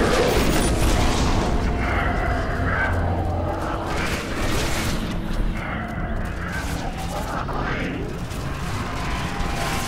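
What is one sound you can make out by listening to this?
An energy sword hums and crackles.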